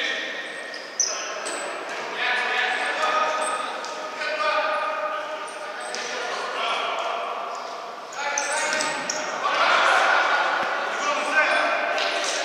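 A ball is kicked with sharp thuds in a large echoing hall.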